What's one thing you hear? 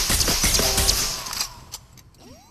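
Guns fire rapidly in bursts with loud blasts.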